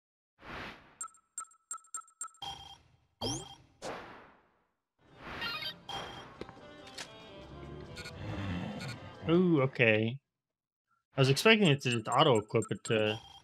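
Short electronic menu beeps sound in quick succession.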